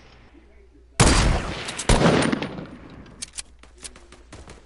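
A gun fires several loud shots.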